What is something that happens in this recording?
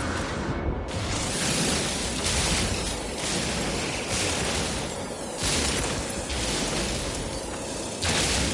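A mining beam hums and crackles steadily against rock.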